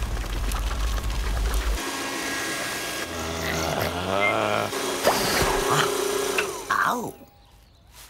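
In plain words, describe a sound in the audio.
A vacuum cleaner hums steadily.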